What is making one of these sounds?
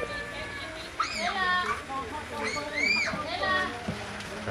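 Young children shriek and shout with excitement.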